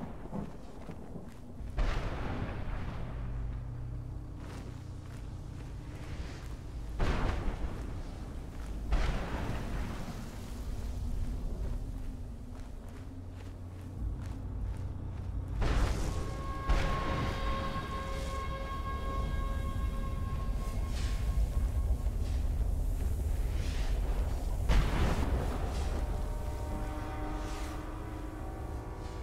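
Footsteps crunch steadily over snow.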